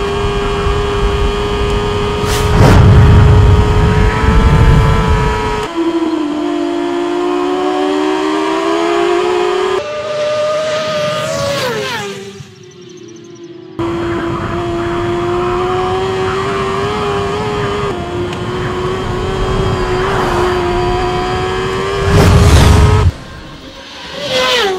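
A motorcycle engine whines loudly at high speed.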